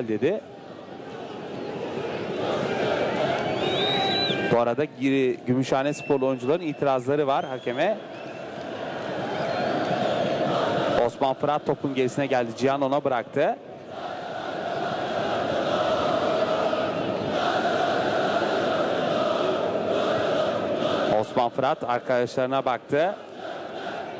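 A large crowd murmurs and chants in a stadium.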